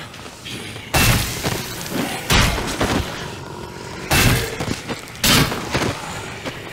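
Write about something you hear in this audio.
Heavy blows land on bodies with loud, dull thuds.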